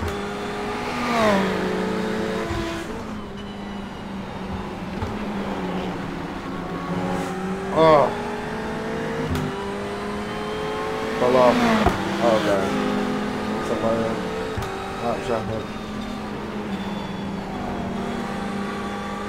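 A racing car engine drones steadily, rising and falling in pitch with gear changes.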